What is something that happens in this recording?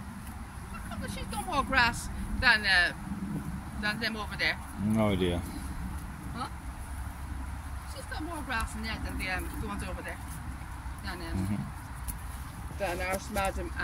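An elderly woman talks calmly close by.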